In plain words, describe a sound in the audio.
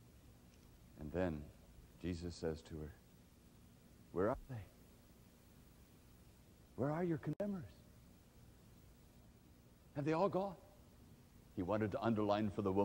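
A man speaks with animation into a microphone, pausing between phrases.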